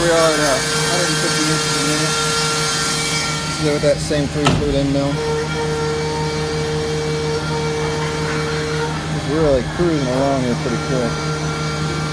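A machine motor whines, rising and falling in pitch as it moves.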